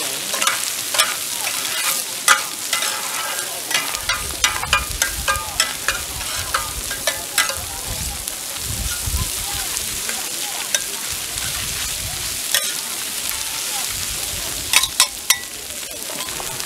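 Metal spatulas clatter and scrape against a hot griddle.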